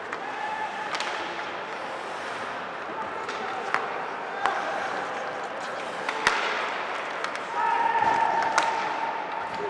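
Pucks and sticks clack sharply in a large echoing arena.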